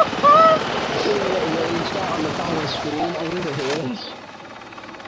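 A helicopter's rotor thumps loudly overhead.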